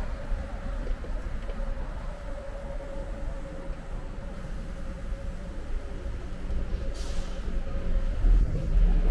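A car engine idles nearby with a steady hum.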